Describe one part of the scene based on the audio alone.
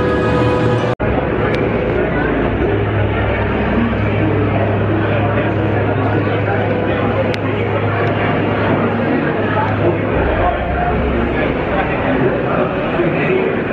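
A roller coaster train clanks steadily up a lift hill.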